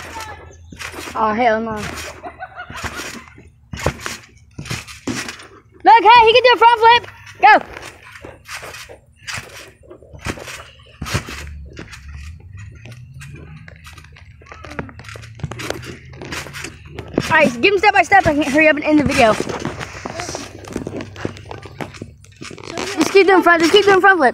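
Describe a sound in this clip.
A trampoline mat thumps and creaks under bouncing feet.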